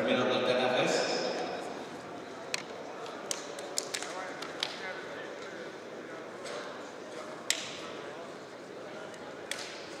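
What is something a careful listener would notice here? A crowd of men and women murmur and chat in a large echoing hall.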